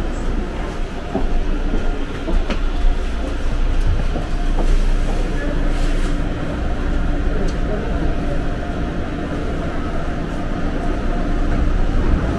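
A subway train rumbles and rattles as it pulls away.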